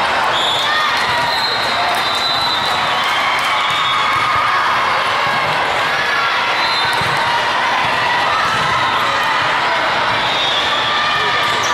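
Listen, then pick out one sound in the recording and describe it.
Many voices of players and spectators chatter and call out in a large echoing hall.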